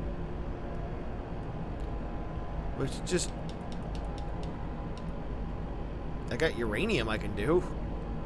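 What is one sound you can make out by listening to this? A terminal menu beeps softly as selections change.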